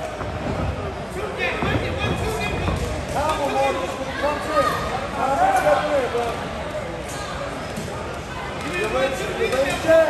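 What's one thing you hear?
A crowd of people talk and shout in a large echoing hall.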